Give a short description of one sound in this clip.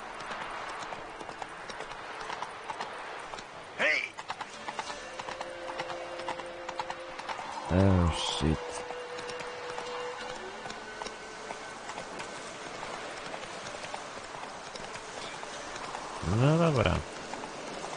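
Horse hooves thud steadily on soft ground.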